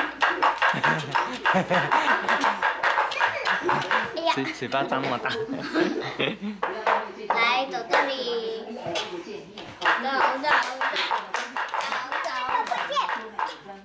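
A toddler laughs and squeals happily close by.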